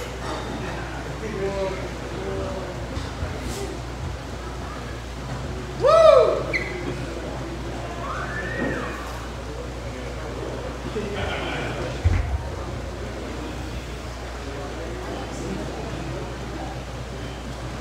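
Young men in a crowd chatter and whoop nearby.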